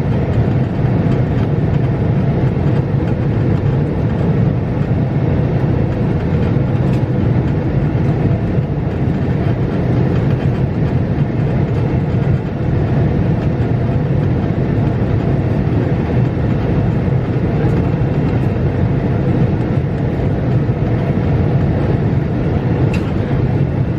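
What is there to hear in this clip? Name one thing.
A jet engine roars steadily and loudly, heard from inside an airliner cabin.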